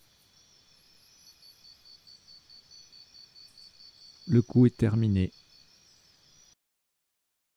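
A countdown timer beeps softly and steadily.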